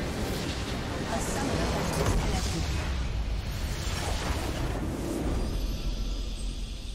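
A structure explodes with a loud blast.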